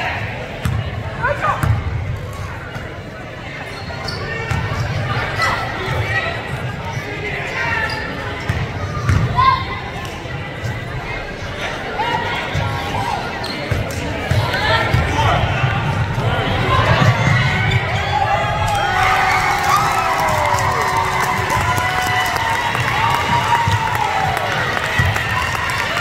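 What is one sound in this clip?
A crowd of spectators talks and cheers in an echoing gym.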